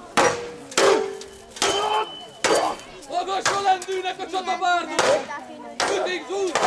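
Metal swords clash again and again with sharp ringing blows.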